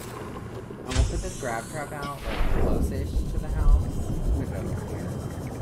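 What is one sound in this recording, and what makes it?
Water splashes loudly as a vehicle drops into the sea.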